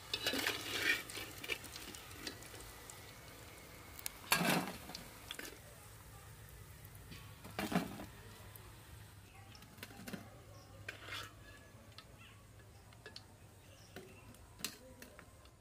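Hot oil sizzles and crackles.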